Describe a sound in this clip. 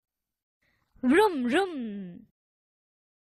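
A young girl playfully imitates an engine sound with her voice.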